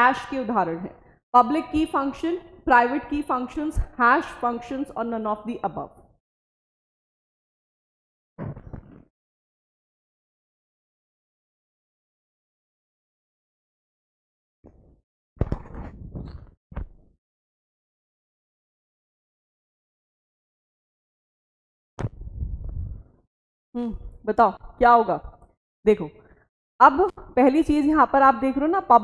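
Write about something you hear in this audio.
A young woman speaks clearly into a close microphone, explaining at a measured pace with long pauses.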